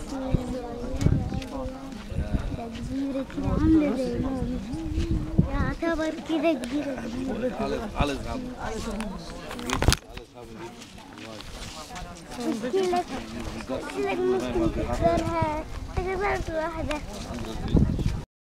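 Several men and women talk nearby outdoors, in a lively crowd.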